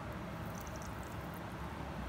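Thick liquid pours into a glass dish.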